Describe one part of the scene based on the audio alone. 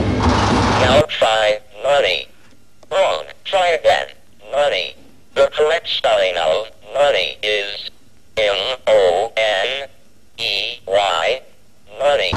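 A Speak & Spell toy speaks words in a synthesized voice.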